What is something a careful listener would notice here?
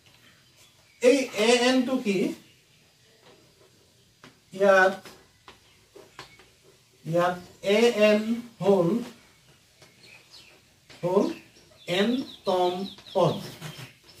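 A man speaks calmly and clearly close by, in short bursts with pauses.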